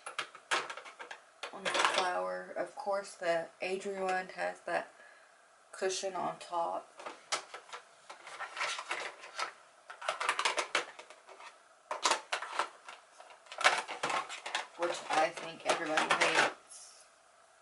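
Small plastic items clatter and rattle.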